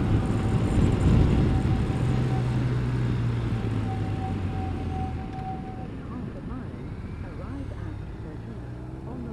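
A motorcycle engine hums steadily and eases off.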